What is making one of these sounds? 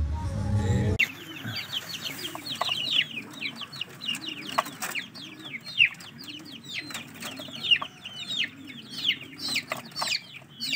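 Chicks peep shrilly and constantly.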